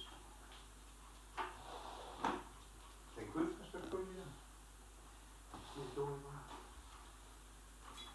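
A cat pads softly across a wooden floor.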